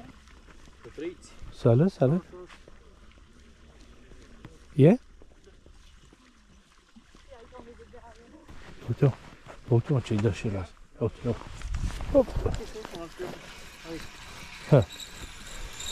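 A man talks nearby outdoors.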